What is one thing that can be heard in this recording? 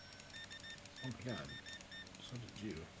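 A card terminal beeps several times.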